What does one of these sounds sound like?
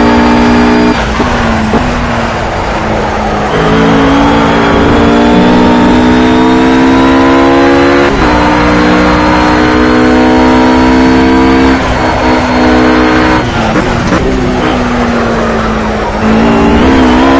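A GT3 race car engine drops in pitch as it shifts down under braking.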